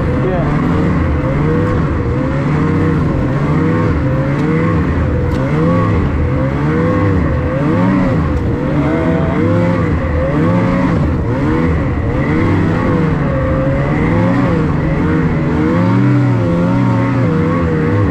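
A snowmobile engine roars close by, its pitch rising and falling again and again.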